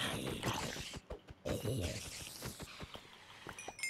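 A spider hisses and chitters loudly.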